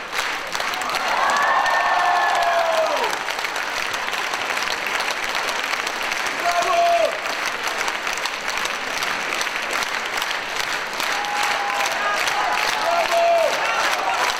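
Audience members whoop and cheer loudly.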